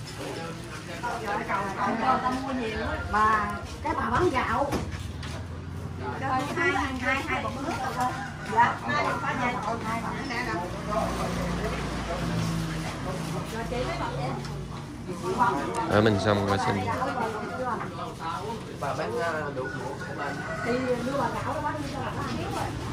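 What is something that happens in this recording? Several women chatter with animation close by.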